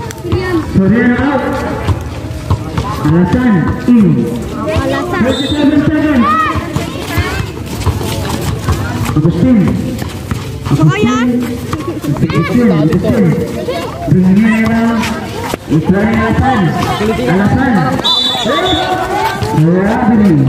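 A crowd of young spectators shouts and cheers nearby outdoors.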